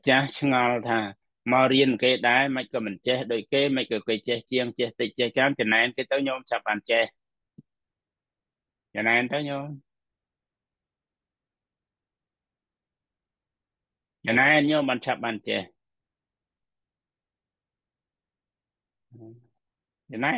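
A middle-aged man speaks calmly through an online call, pausing between phrases.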